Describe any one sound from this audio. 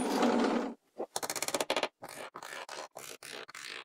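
Wooden pieces knock together.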